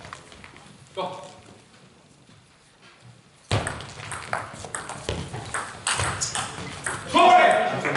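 A table tennis ball clicks back and forth off bats and a table in an echoing hall.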